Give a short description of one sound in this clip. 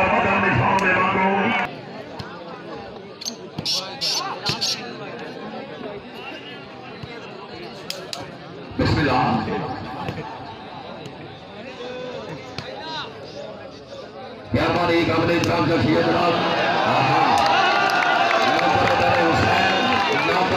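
A man commentates loudly over a loudspeaker.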